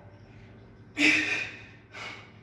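Barbell weight plates clank as a bar is lifted.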